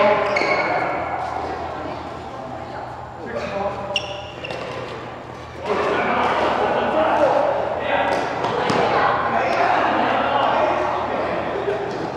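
Badminton rackets hit a shuttlecock back and forth in a large echoing hall.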